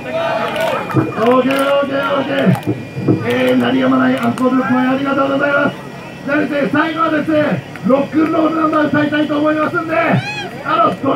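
A young man sings loudly in long held notes.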